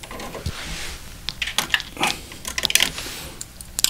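A plastic cassette clicks and rattles as it is pulled out.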